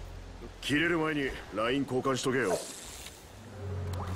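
A fishing line whirs as it is cast.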